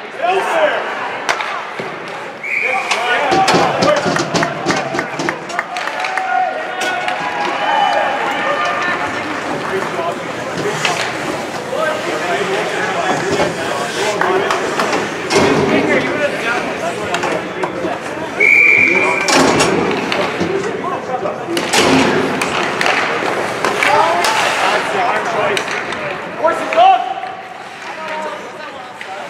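Young players shout across the rink.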